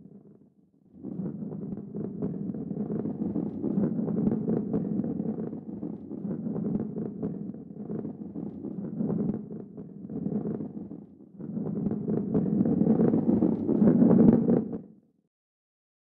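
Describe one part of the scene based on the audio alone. A heavy ball rolls along a track with a low rumble.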